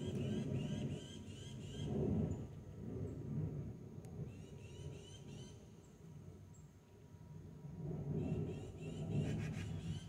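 A squirrel nibbles and crunches seeds close by.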